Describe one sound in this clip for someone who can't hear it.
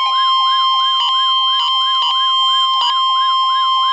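A weather radio beeps briefly as its buttons are pressed.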